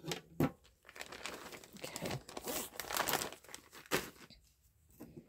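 Paper and small objects rattle as hands rummage through them.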